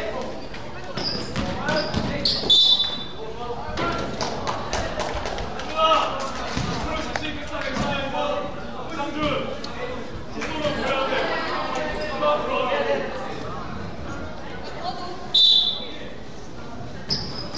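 Sneakers squeak sharply on the court.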